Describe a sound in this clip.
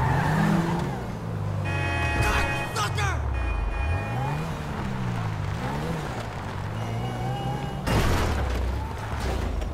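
Car tyres bump and scrape over a kerb.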